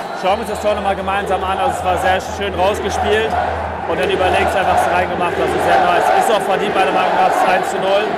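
A young man talks excitedly and close up.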